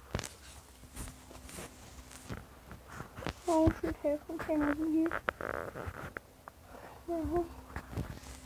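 Clothing rubs and brushes against a phone's microphone.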